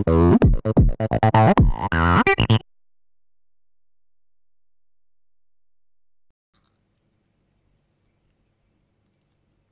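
A plastic phone case clicks faintly as fingers press it onto a phone.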